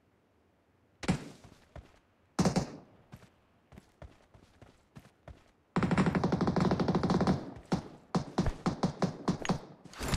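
Footsteps scrape and thud on rock.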